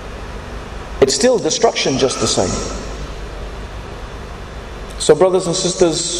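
A man speaks with animation into a microphone, heard through a loudspeaker in a large echoing hall.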